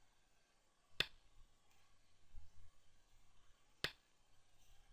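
A game stone clicks sharply as it is placed on a board.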